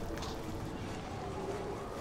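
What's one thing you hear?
Flames crackle and burn.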